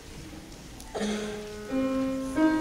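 A grand piano plays notes in a large hall.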